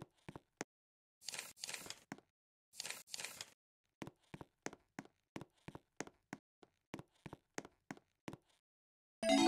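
Footsteps patter quickly on a floor.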